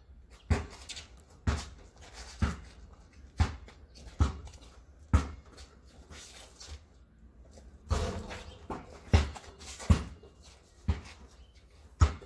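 A basketball bounces hard on concrete in a steady rhythm.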